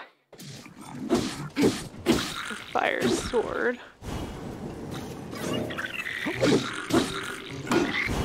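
Weapons clang and thud as blows land in a fight.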